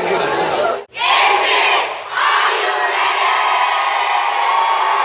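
A group of teenage boys chants and shouts together.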